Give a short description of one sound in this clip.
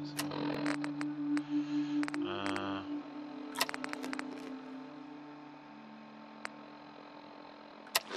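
Short electronic clicks sound as menu items are scrolled.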